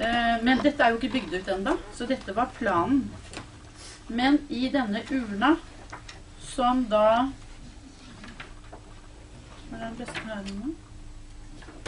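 An older woman talks nearby in a calm voice.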